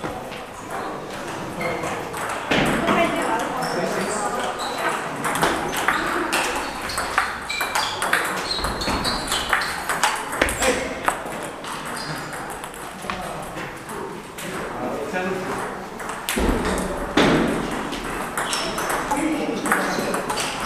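Balls bounce and click from many tables around a large echoing hall.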